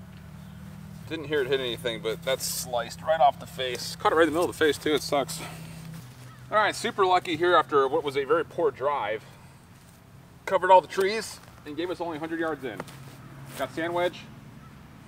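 A young man talks casually nearby.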